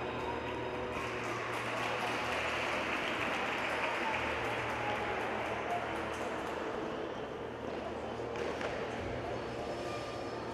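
A crowd of voices chatters and shouts in a large echoing hall.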